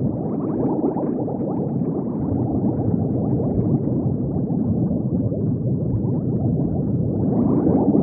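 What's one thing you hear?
Bubbles gurgle and burble steadily underwater.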